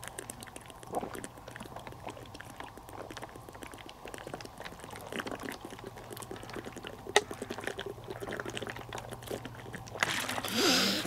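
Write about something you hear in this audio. A man gulps water from a plastic bottle.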